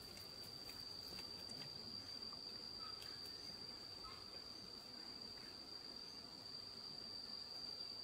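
A woman walks along a dirt path with soft footsteps.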